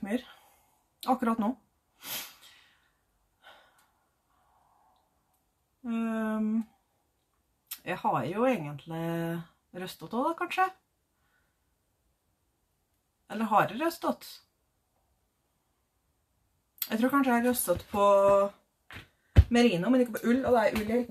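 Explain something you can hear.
A young woman talks calmly and close by, with pauses.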